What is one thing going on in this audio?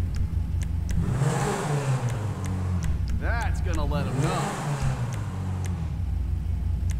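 A sports car engine revs up loudly twice and settles back.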